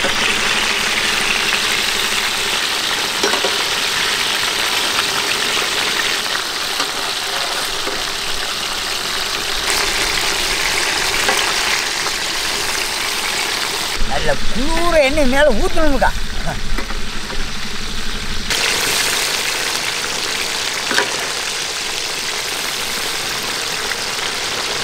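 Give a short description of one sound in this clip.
Hot oil sizzles and crackles steadily.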